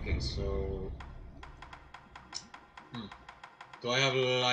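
Menu clicks tick rapidly as items scroll.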